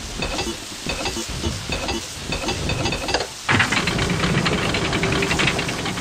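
Metal gears turn with a rapid clicking and grinding.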